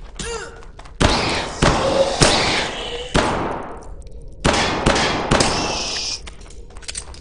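Gunshots fire in loud bursts, echoing briefly.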